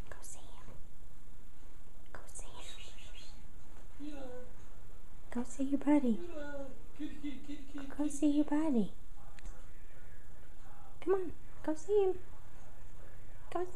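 A cat rolls and rubs against a rug with soft rustling.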